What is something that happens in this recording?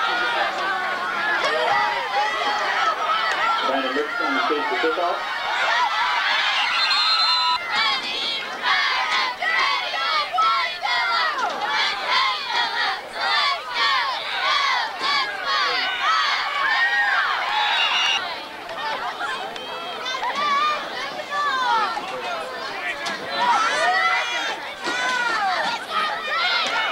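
A crowd of spectators cheers and shouts outdoors at a distance.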